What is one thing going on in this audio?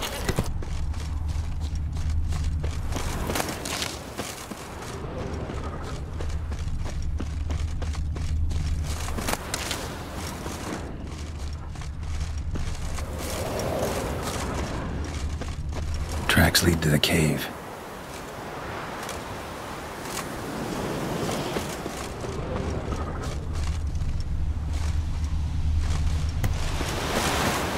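Footsteps rustle through grass and brush at a steady pace.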